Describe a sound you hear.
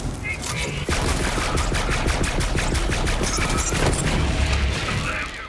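A rapid-fire gun shoots in quick, steady bursts.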